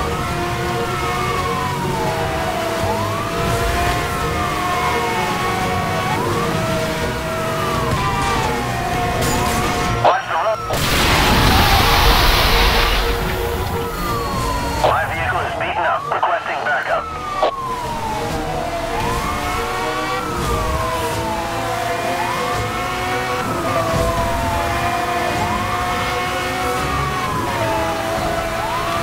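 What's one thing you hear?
A car engine roars at high speed.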